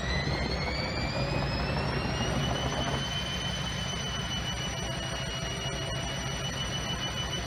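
A washing machine drum rumbles steadily as it spins.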